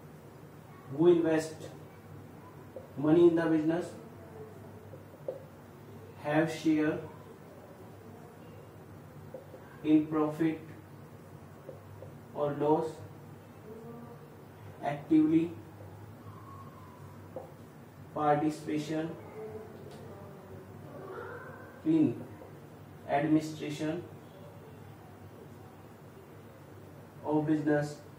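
A man speaks calmly in short phrases with pauses, close by.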